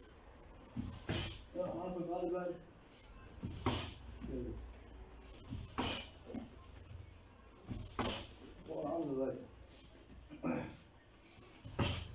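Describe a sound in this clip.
Kicks and punches thud sharply against padded mitts.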